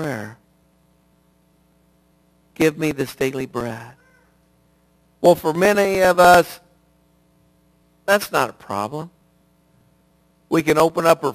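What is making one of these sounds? A middle-aged man speaks with animation through a microphone, in bursts with pauses.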